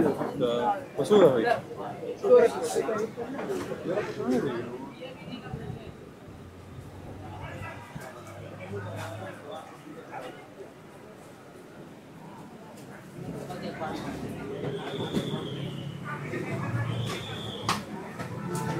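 Men talk nearby, close to the microphone.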